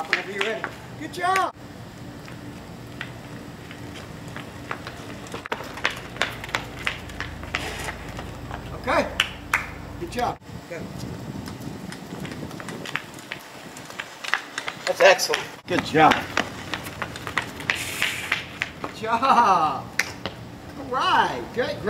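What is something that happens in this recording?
Small bicycle tyres roll on concrete.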